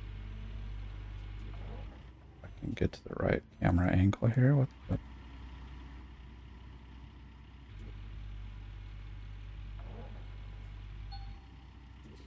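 A heavy diesel engine rumbles low and steady.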